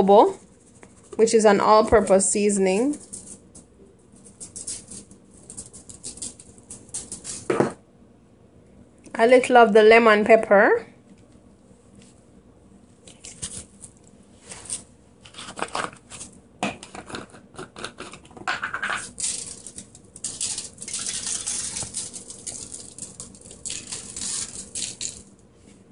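Dry seasoning rattles and patters as it is shaken from a plastic shaker bottle.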